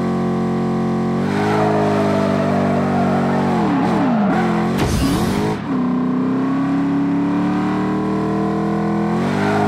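Car tyres screech while drifting around bends.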